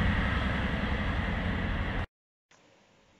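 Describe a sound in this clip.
A train rushes loudly past.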